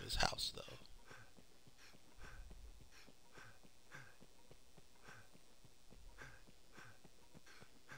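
Footsteps run quickly and steadily over stone.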